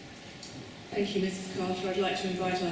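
A second middle-aged woman begins speaking through a microphone.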